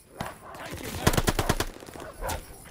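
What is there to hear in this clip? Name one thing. A burst of rapid gunfire rings out close by.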